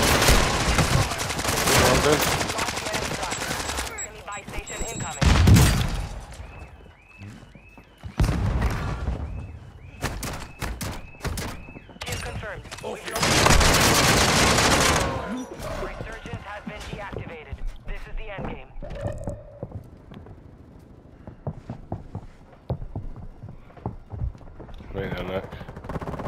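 Loud gunshots and bangs ring out.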